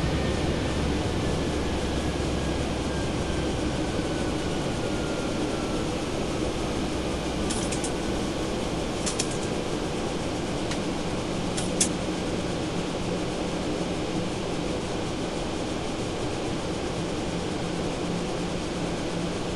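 A jet engine roars steadily in the background.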